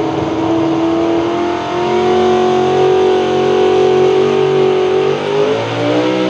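A truck engine roars loudly at high revs, straining steadily.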